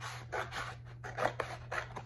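Scissors snip.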